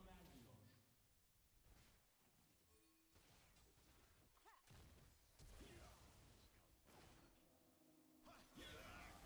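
Game spell effects whoosh and zap.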